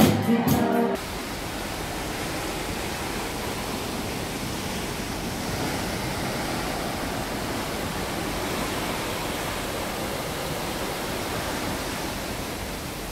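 Sea waves wash and splash against a moving ship's hull.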